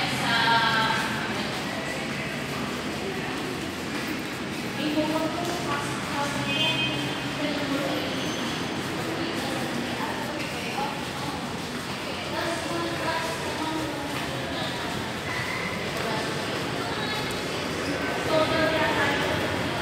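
A middle-aged woman talks calmly and close to the microphone.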